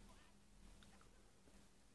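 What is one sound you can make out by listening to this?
A young boy makes a short sound with his voice, close by.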